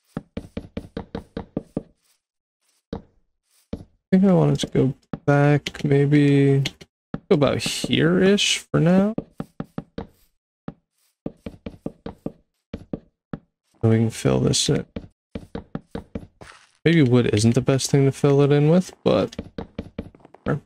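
Wooden blocks are set down with quick, soft knocks.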